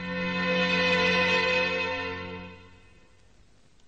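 A temple bell rings with a long ringing tone and slowly fades.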